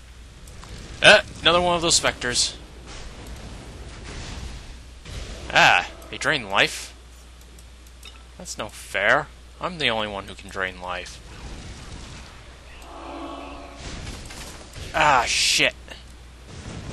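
Magic blasts and weapon blows crash out in short bursts during a fight.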